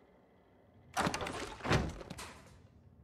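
A metal crate clanks open.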